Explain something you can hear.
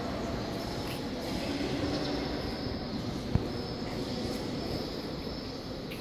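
A crowd of adults murmurs and chatters in a large echoing hall.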